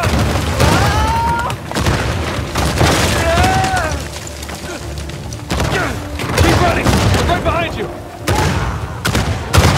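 Rocks crash and rumble as they collapse.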